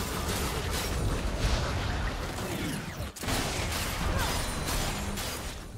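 Magic spells whoosh and crackle during a fast fight.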